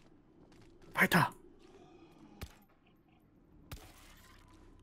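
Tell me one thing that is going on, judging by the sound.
Gunshots crack a few times.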